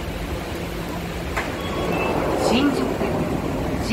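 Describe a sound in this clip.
Train doors slide open.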